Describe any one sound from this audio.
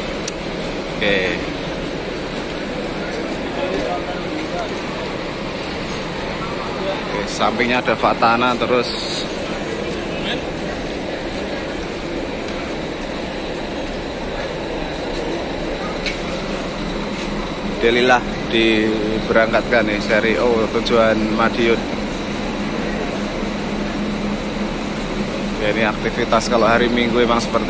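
A man and a woman talk nearby in short bursts.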